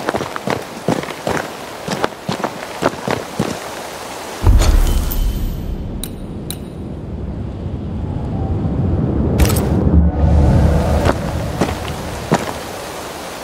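Footsteps crunch steadily over twigs and leaves.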